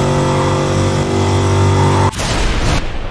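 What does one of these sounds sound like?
A muscle car engine roars at full throttle.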